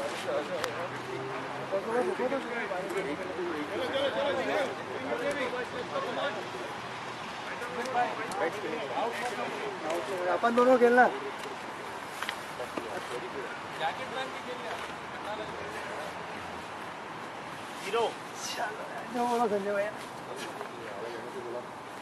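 Men talk and call out at a distance outdoors.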